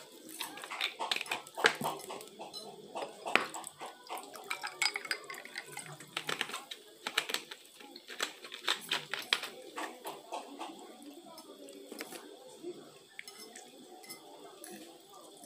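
Forks clink and scrape against plates.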